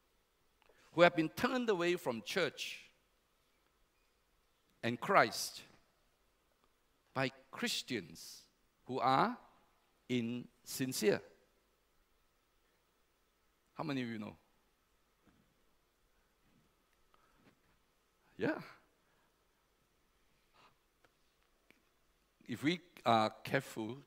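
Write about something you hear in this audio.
An elderly man speaks calmly through a microphone, pausing often.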